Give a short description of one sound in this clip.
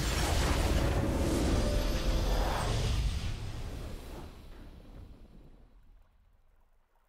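A triumphant game victory sound rings out loudly and then slowly fades away.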